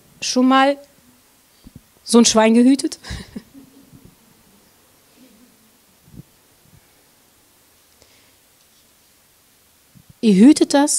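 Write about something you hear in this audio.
A middle-aged woman speaks expressively into a microphone, with long pauses.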